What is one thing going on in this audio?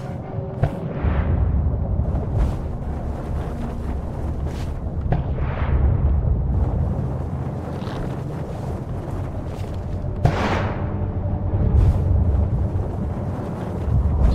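A soft whooshing burst sounds as someone leaps into the air.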